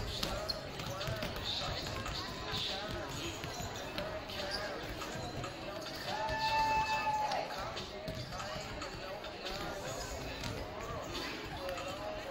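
Young women call out to one another in a large echoing gym.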